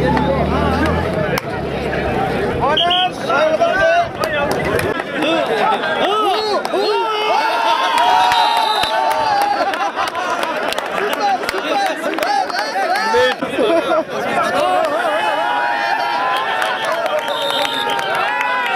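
Young men shout excitedly close by.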